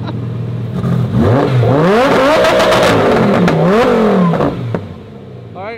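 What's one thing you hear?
A sports car engine revs loudly, rising and falling.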